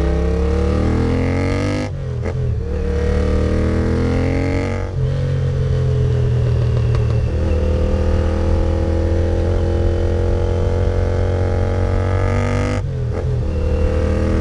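A motorcycle engine roars loudly, rising in pitch and dropping briefly with each gear change.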